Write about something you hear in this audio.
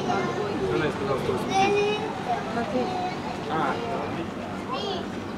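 Men and women in a passing crowd chatter outdoors.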